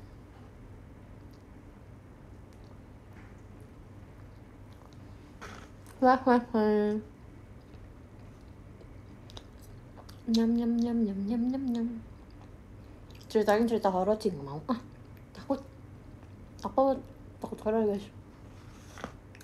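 A young woman bites and chews crunchy food close by.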